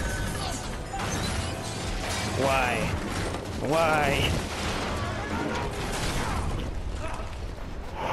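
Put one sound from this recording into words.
Heavy metal crashes and scrapes as a train car tumbles.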